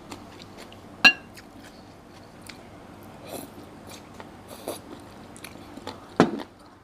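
Chopsticks click against a ceramic bowl.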